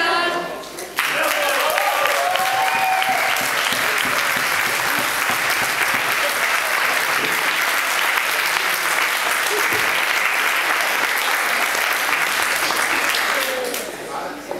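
A crowd of diners cheers and claps loudly.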